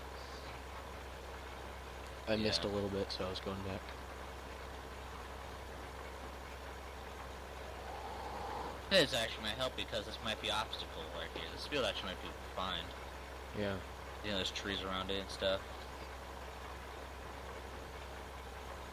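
A tractor engine drones steadily.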